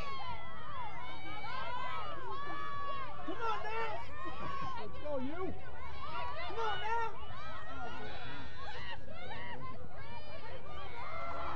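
Young women shout and call to each other across an open field.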